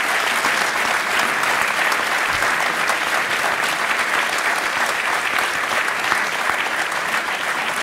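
A large audience applauds steadily in an echoing hall.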